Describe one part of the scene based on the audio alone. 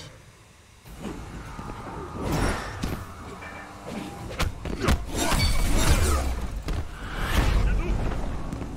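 Magic blasts crackle and whoosh.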